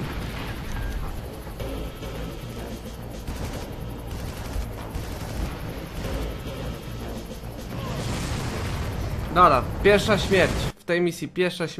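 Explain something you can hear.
A helicopter engine roars and whirs.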